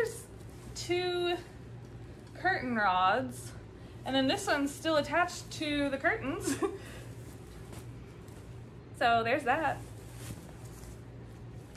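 Fabric rustles as a curtain is shaken out.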